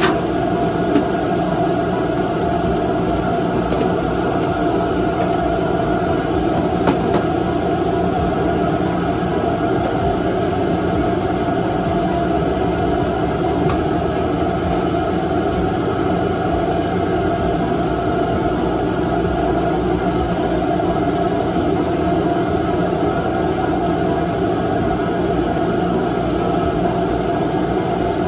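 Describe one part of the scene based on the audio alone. A range hood fan drones.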